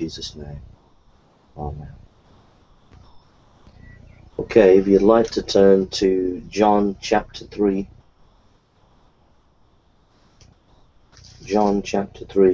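A middle-aged man speaks calmly and closely into a microphone, heard through an online call.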